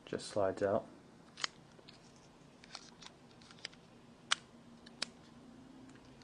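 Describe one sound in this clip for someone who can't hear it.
A plastic phone cover clicks and snaps into place.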